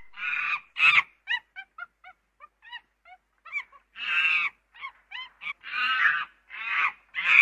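A chimpanzee screams and hoots loudly in rising, pulsing calls.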